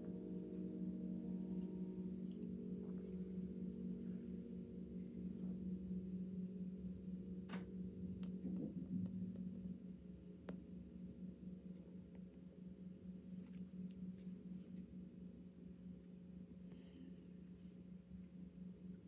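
An electric guitar plays softly.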